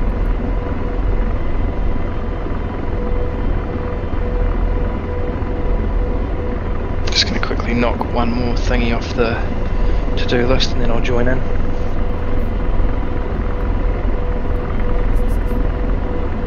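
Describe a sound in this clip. A helicopter engine drones and its rotor thrums steadily.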